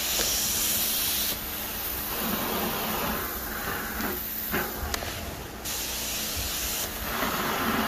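A carpet cleaning wand hisses loudly as it sucks up water from carpet.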